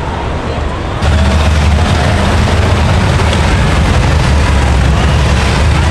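Motorcycles ride past with engines roaring.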